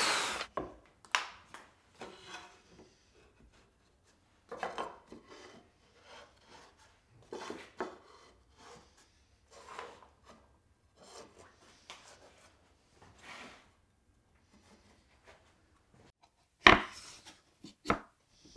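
Wooden strips knock and clatter against a workbench.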